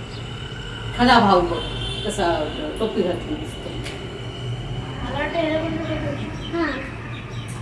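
A young girl speaks softly.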